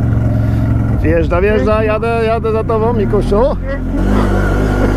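A quad bike engine revs hard and whines while climbing a steep hill.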